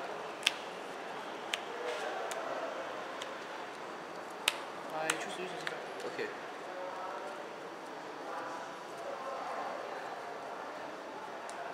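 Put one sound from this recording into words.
Playing cards are shuffled by hand with a soft riffling.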